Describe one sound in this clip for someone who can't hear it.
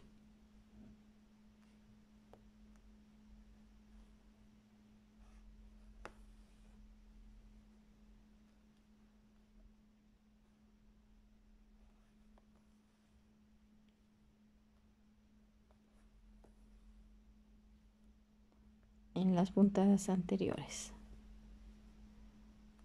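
Thread rustles softly as it is pulled through cloth.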